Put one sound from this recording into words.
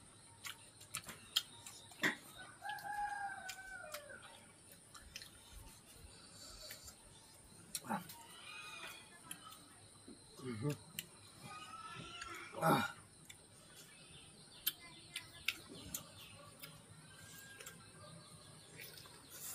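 Crunchy food cracks and snaps between fingers.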